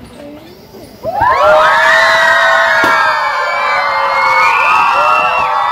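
A crowd of children cheers and shouts excitedly outdoors.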